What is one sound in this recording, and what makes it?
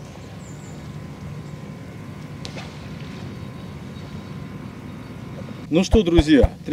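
Paddles splash softly in calm water.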